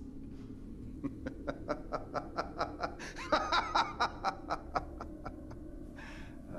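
A man laughs softly in short bursts.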